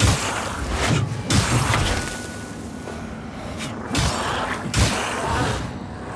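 Swords clash and strike against creatures in heavy thuds.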